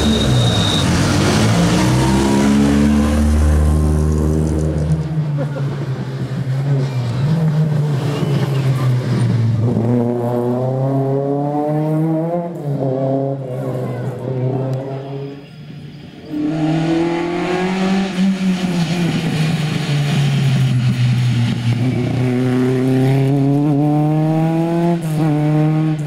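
A rally car engine revs hard and roars past, rising and falling in pitch as it changes gear.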